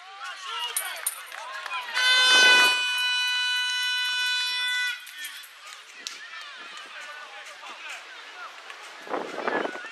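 Children shout across an open field.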